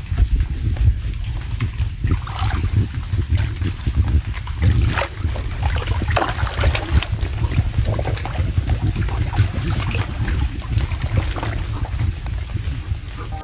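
A man splashes and wades through thick mud and water.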